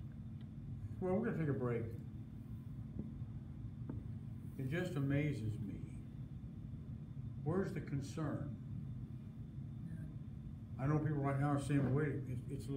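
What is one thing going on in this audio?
An elderly man speaks calmly in short phrases with pauses, close by.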